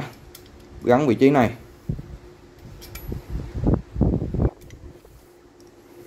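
Metal clicks and clinks as a hacksaw blade is fitted into its frame.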